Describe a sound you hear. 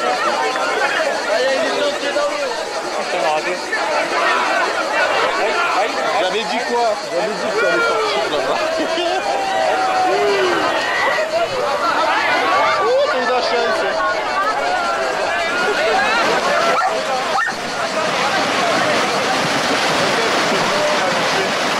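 Water splashes as animals wade through a river.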